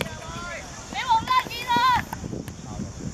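Young boys shout loudly across an open field.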